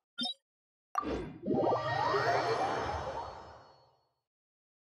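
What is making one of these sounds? A teleport whooshes and chimes.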